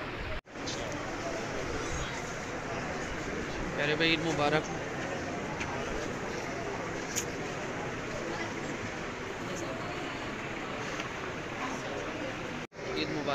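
A crowd of men murmurs and chatters close by.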